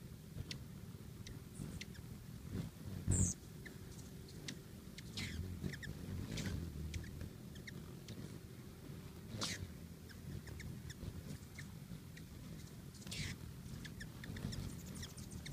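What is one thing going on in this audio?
Hummingbirds chirp in short, high squeaks.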